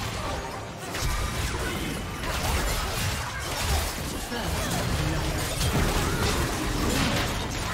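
Spell effects whoosh and clash as game characters fight.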